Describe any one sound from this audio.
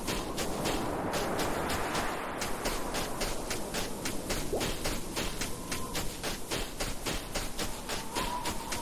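Heavy metallic footsteps thud quickly and steadily.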